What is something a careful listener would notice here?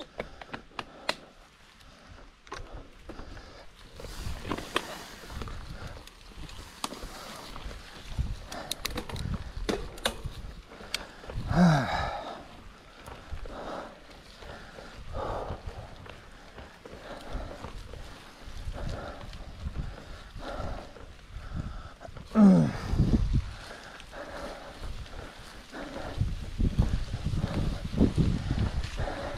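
A bicycle chain and frame rattle over bumps.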